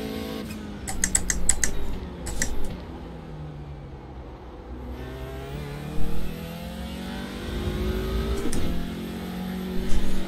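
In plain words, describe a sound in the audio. A racing car engine revs up and down through its gears.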